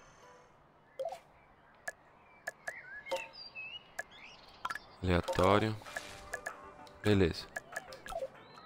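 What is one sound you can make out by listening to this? Short interface clicks and chimes sound as menus open and close.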